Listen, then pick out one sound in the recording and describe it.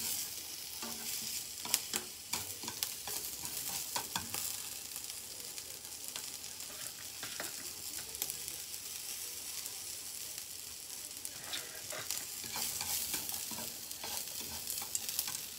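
Chopsticks click and scrape against a frying pan.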